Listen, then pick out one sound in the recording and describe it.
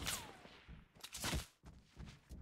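A gun fires a single loud shot.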